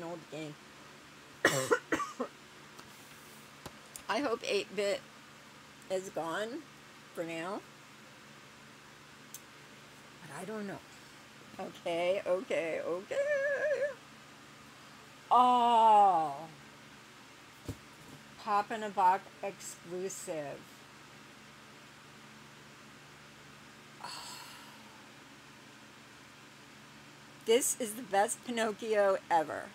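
An elderly woman talks with animation close by, in short bursts with pauses.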